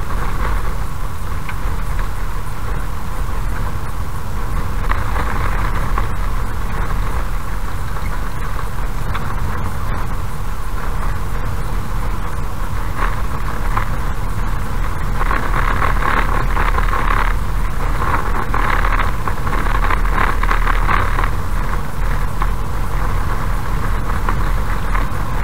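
Tyres rumble and rattle on a rough road surface.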